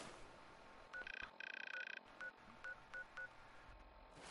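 A handheld device beeps and chirps electronically.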